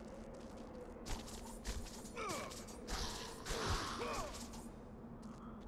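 Chained blades whoosh and strike with fiery bursts.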